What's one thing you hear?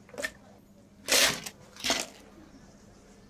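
Ice cubes clatter into a plastic cup.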